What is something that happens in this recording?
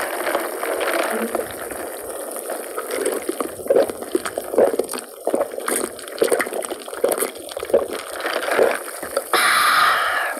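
A young woman gulps a drink loudly, close to a microphone.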